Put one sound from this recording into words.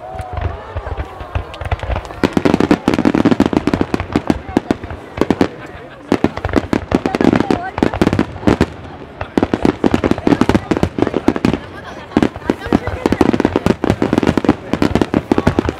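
Fireworks burst and boom in rapid, rolling volleys outdoors.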